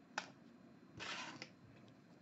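Stiff cards slide and flick against each other.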